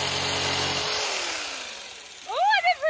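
An electric jigsaw motor winds down and stops.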